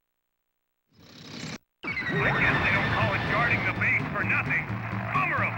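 A robot's thrusters roar loudly as it flies forward.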